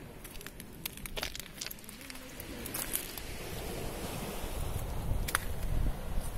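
Shells crunch and clatter underfoot.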